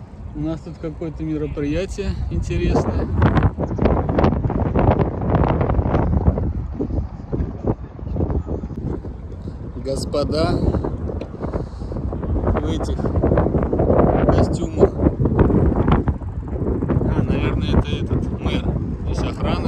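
Wind rumbles against a microphone.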